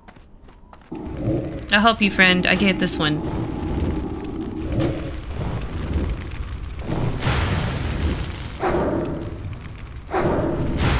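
Game combat sounds clash and whoosh.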